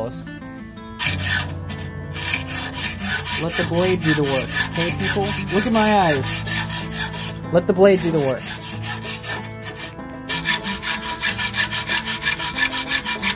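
A hacksaw rasps back and forth through metal in quick, even strokes.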